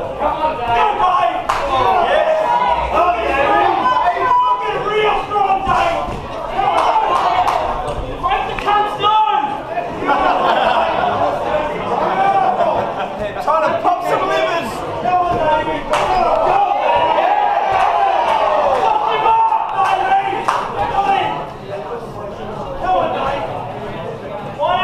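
A crowd of men shouts and cheers loudly in an echoing hall.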